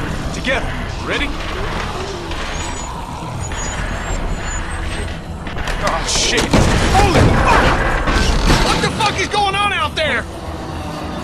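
A man speaks urgently up close.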